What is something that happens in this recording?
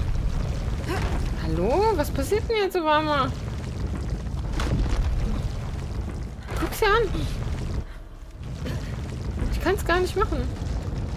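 A young woman speaks briefly with animation, close to a microphone.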